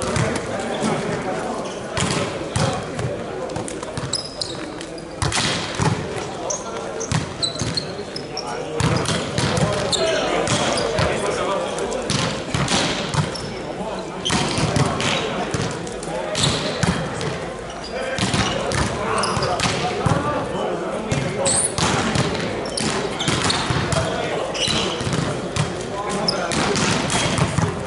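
The sounds echo around a large hall.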